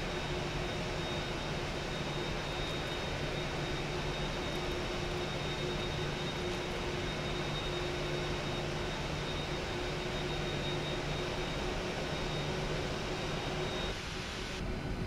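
A high whine from jet engines rings steadily, then drops away.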